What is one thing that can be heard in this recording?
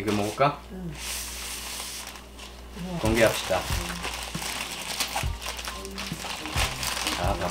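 Paper bags rustle and crinkle as they are unwrapped.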